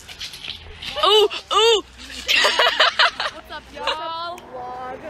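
A young woman shouts excitedly close by.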